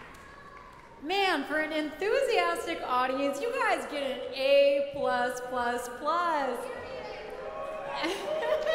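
A young woman speaks with animation into a microphone in a large echoing hall.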